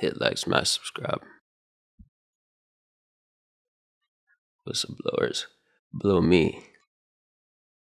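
A young man speaks close to a microphone, in short bursts.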